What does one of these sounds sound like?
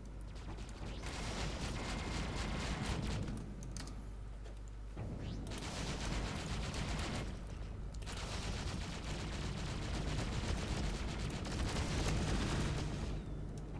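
Laser weapons fire in rapid bursts with crackling blasts.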